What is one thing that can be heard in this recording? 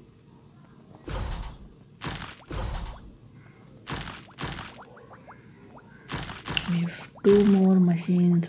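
Short electronic chimes ring out as bonus stars fly across.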